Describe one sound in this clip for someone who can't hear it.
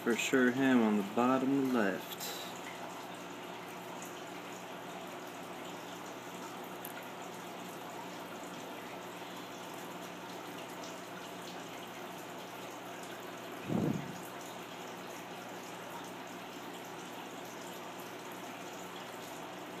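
A small gas flame hisses softly and steadily.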